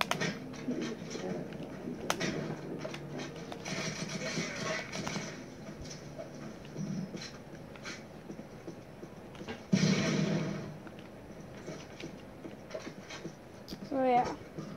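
Gunshots crack repeatedly from a video game heard through television speakers.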